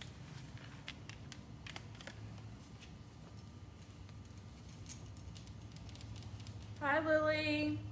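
Clothing rustles as a woman pulls a top over her head.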